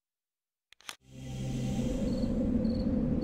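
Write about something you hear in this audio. Low ambient music hums with a steady drone.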